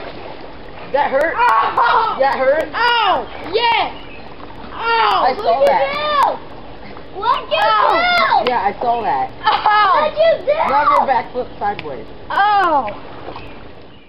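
A young man in the water shouts and talks with animation close by.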